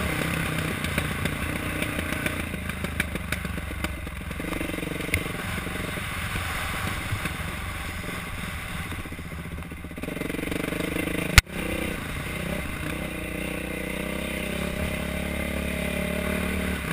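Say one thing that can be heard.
A dirt bike engine drones and revs up and down close by.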